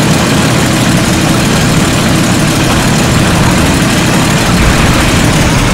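A tank engine rumbles loudly and steadily.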